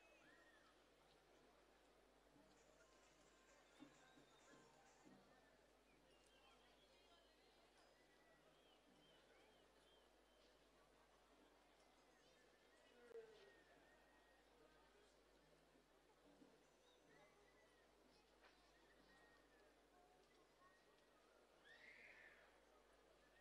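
A sparse crowd murmurs faintly in a large open arena.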